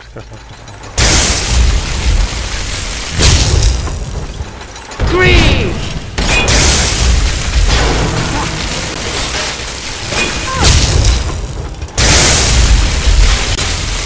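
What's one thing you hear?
Electric magic crackles and buzzes loudly in bursts.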